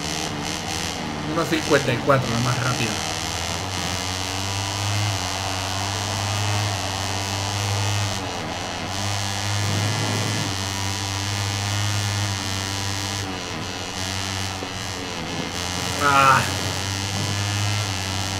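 A racing motorcycle engine roars and whines, its pitch rising and falling as it shifts gears.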